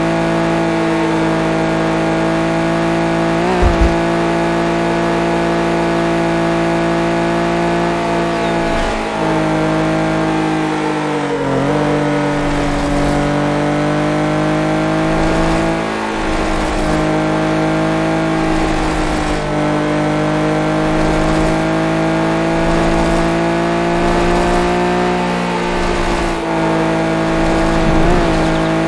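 A racing car engine roars steadily at high revs, dipping briefly as it shifts gear.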